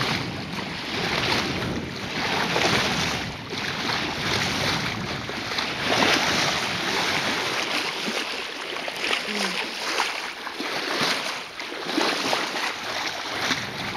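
Water rushes and splashes steadily against a moving boat's hull.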